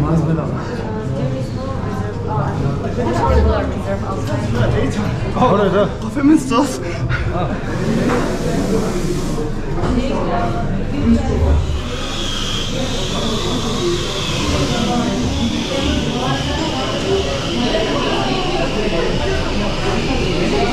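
A crowd of people chatter in a busy room.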